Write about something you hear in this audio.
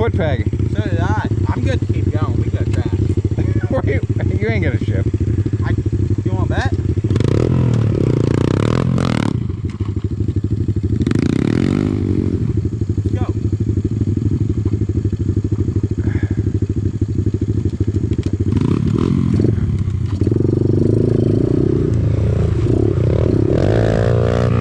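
A dirt bike engine idles close by with a steady rattling buzz.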